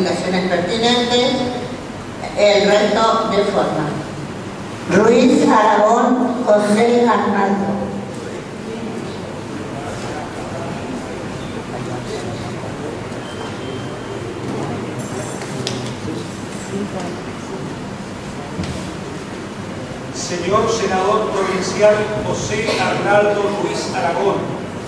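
A crowd murmurs softly in the background.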